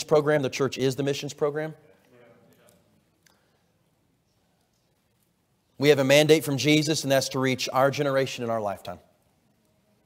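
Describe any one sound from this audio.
A man speaks calmly through a microphone in a large echoing hall, pausing between phrases.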